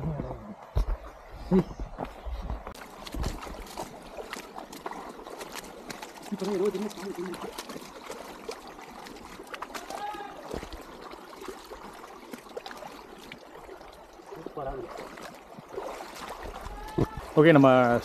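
Water trickles and splashes over rocks in a shallow stream.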